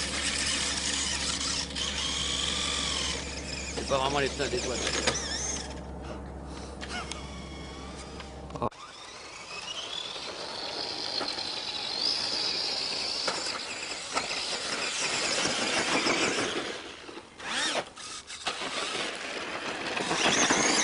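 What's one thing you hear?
Toy car tyres crunch over sand and dirt.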